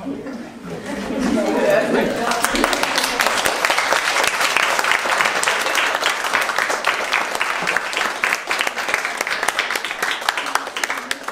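A crowd of young people cheers and claps loudly.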